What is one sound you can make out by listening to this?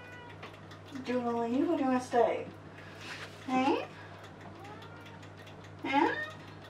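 A young woman speaks close by, in short hesitant bursts.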